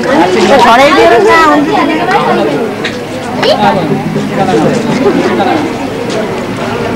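Several people talk and call out close by, with lively voices.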